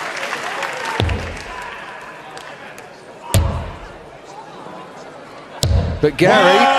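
Darts thud into a board one after another.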